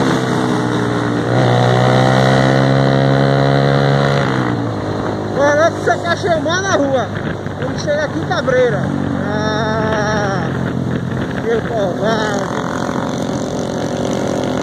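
A motorcycle engine drones close by and revs higher.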